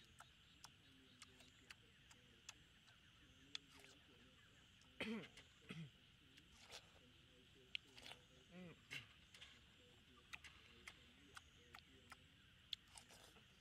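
A boy bites into a juicy watermelon.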